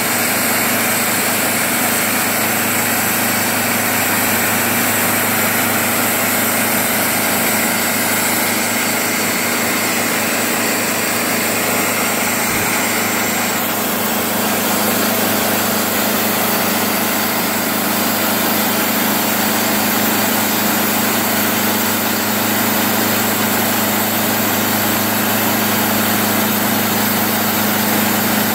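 A band saw whines as it cuts through a log.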